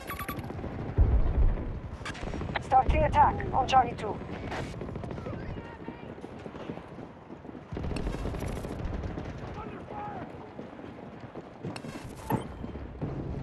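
Gunshots crack in quick bursts nearby.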